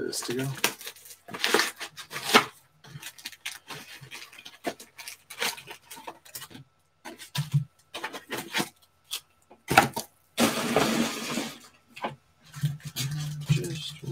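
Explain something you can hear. Card packs rustle and clack as hands handle them.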